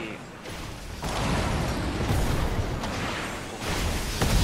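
A storm roars with a low rumbling wind.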